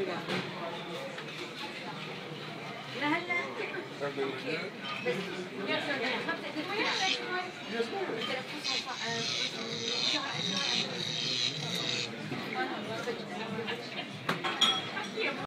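Many people chatter and talk over each other nearby.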